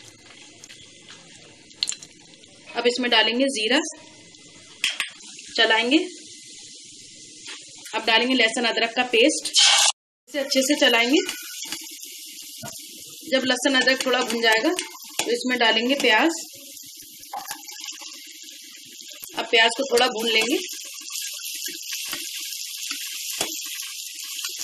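A spatula scrapes and stirs against the bottom of a pot.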